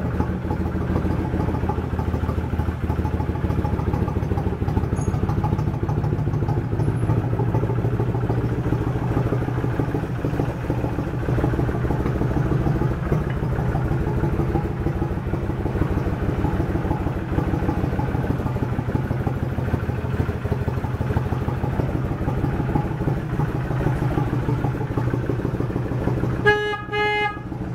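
A V-twin cruiser motorcycle engine idles with a steady, loping beat.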